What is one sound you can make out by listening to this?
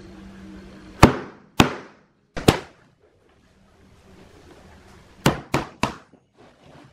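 A hammer taps a metal fitting into wood with sharp knocks.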